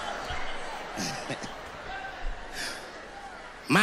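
A young man laughs softly nearby.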